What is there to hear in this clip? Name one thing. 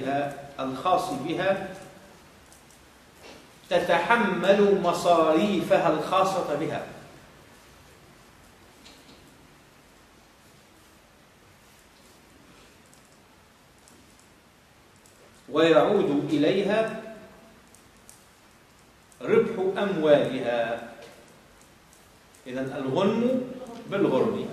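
A man speaks calmly into a nearby microphone, in bursts with long pauses.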